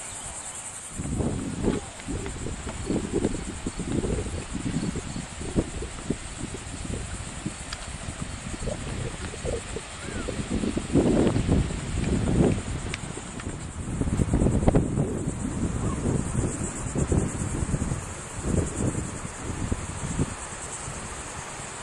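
Wind gusts roar against the microphone outdoors.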